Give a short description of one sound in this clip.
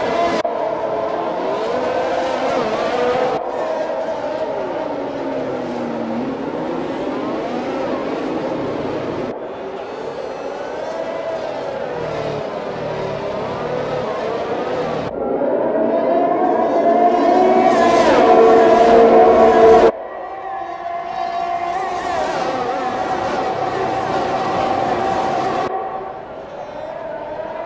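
Racing car engines scream and whine, rising and falling in pitch as they shift gears.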